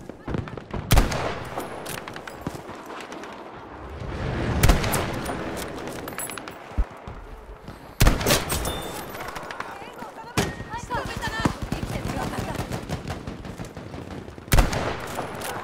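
A rifle fires single loud shots, each followed by a ringing echo.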